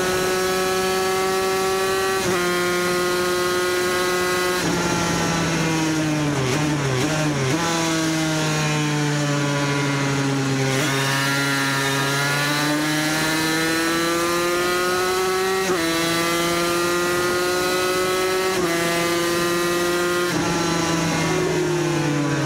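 A motorcycle engine roars at high revs, shifting gears and rising and falling in pitch.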